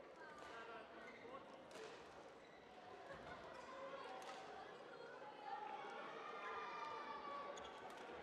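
A shuttlecock is struck sharply with a racket.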